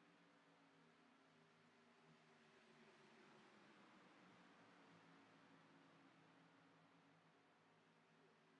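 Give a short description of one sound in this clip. A race car engine idles with a low steady rumble.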